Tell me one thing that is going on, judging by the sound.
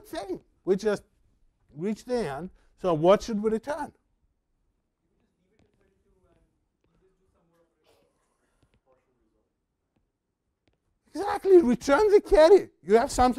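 An older man lectures with animation through a clip-on microphone.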